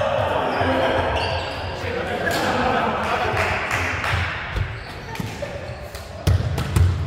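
Young men call out and talk in a large echoing gym.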